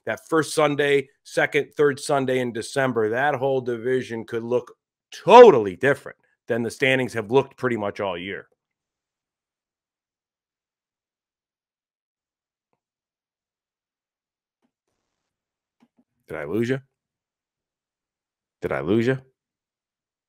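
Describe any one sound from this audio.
A middle-aged man talks with animation into a close microphone, pausing in between.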